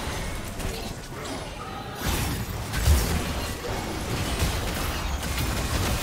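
Spell effects whoosh and blast in a game battle.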